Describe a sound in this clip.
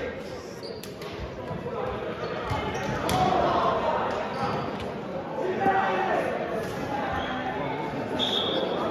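Young men call out and talk across a large echoing gym.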